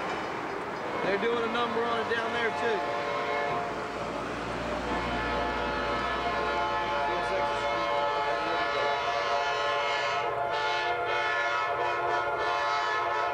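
A diesel locomotive hauling a passenger train approaches, its engine roaring louder.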